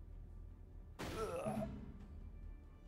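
A sharp impact sounds as an arrow strikes a fighter.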